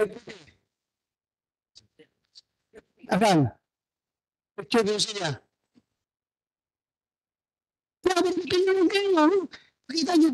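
A woman speaks into a microphone in short bursts with pauses.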